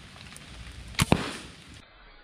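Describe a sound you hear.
A gun fires a single sharp shot.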